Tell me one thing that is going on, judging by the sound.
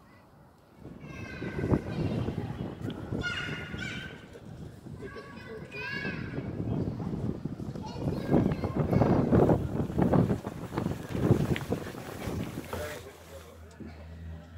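Wind gusts outdoors, buffeting loudly.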